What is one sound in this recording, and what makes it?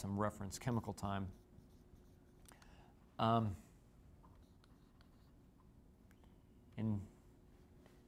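A man speaks calmly in short phrases through a clip-on microphone.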